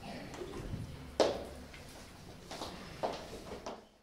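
A woman speaks calmly into the room.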